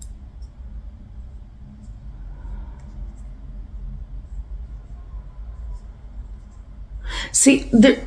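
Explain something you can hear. A young woman speaks quietly close to a microphone.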